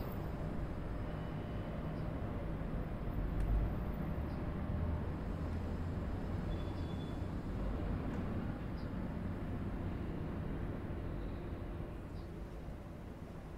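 A train rumbles past close by on the rails.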